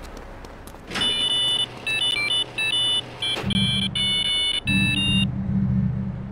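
An electronic pager beeps in a quick series of short tones.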